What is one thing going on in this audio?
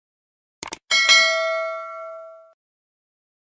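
A small bell chimes and rings out.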